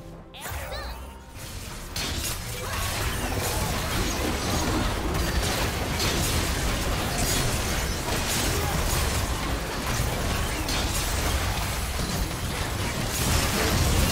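Game spell effects and attacks crackle and boom during a fight.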